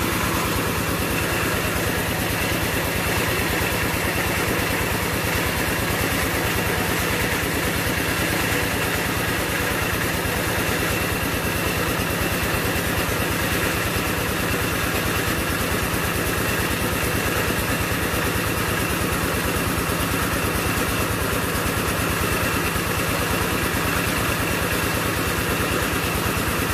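An electric feed pellet mill runs, pressing feed.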